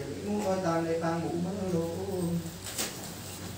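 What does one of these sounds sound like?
A woman speaks nearby in a raised, animated voice.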